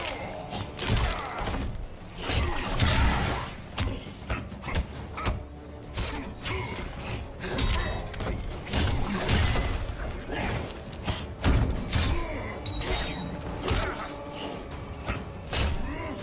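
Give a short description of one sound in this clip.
Heavy punches and kicks land with loud thuds and smacks.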